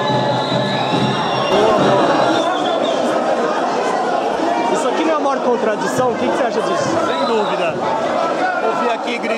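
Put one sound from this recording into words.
A crowd murmurs in an echoing indoor hall.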